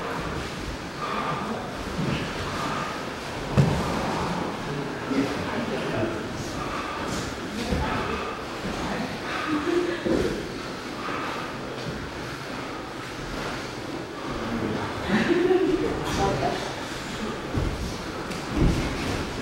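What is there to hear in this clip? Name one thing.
Bodies thump and shift on padded mats.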